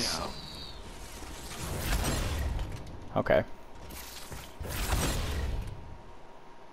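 Energy blasts crackle and burst in a fight.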